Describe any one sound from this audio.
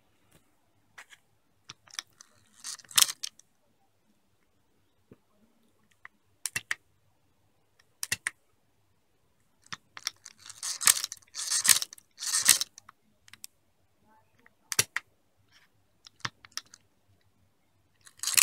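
A mechanical calculator clicks and clatters as its gears turn.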